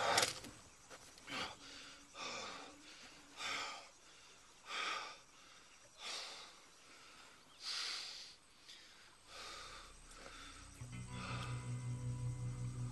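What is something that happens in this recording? An elderly man speaks in short, tired bursts close by.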